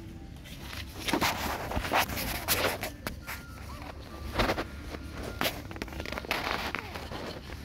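A man rustles a plastic bag with his hands.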